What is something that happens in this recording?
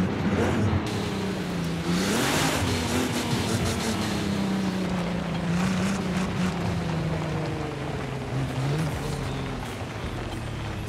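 A car engine roars, its pitch rising and falling as it shifts gears.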